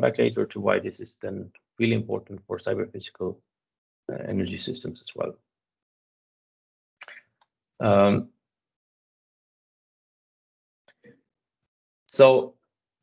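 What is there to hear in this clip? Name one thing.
A man speaks calmly through a microphone on an online call, pausing often.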